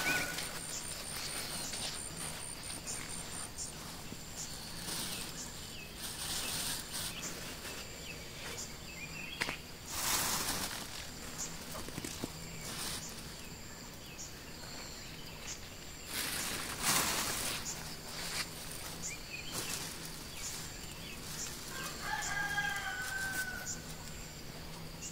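Footsteps crunch on dry soil.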